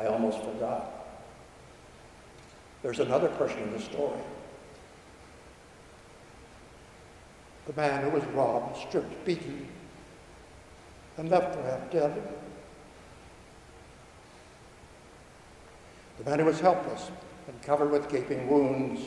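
An elderly man speaks slowly and calmly through a microphone, with pauses, in a large echoing hall.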